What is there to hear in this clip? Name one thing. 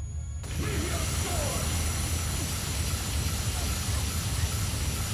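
Magical blasts roar and crackle in a rapid burst of explosions.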